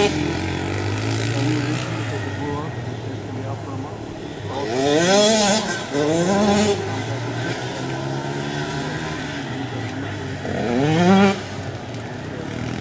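Motorcycles buzz steadily in the distance, outdoors.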